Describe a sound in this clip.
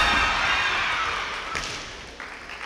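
A kendo fighter lets out a long, loud shout that echoes through a large hall.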